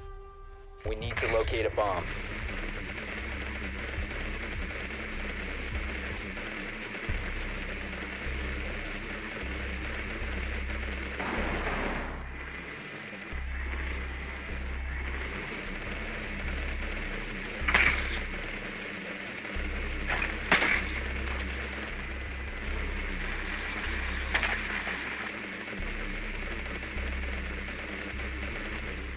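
A small wheeled drone whirs and rattles as it rolls across a hard floor.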